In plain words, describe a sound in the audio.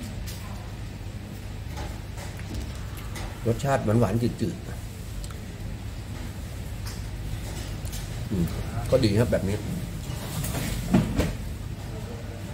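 A man chews food with his mouth closed.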